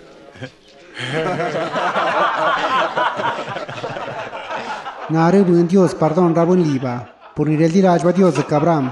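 A man speaks loudly with animation, close by.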